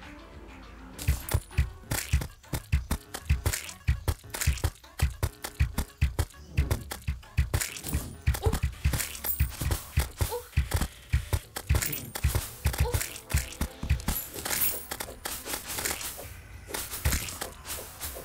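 Rapid hits and thuds of a fight sound again and again.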